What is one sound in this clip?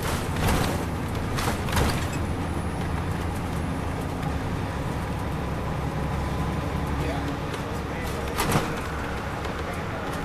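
A diesel coach engine drones while cruising, heard from inside.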